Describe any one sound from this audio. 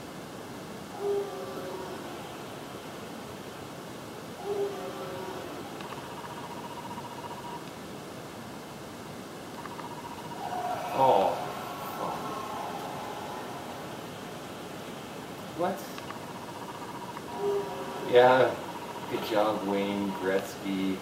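Electronic video game sounds and short tunes play from a television speaker.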